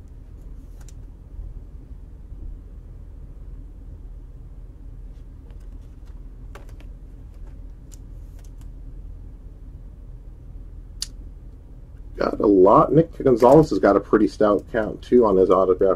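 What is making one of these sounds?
Trading cards rustle and click softly as hands handle them.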